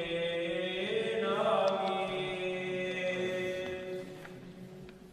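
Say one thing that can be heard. A man chants a long sung phrase into a microphone in a large echoing hall.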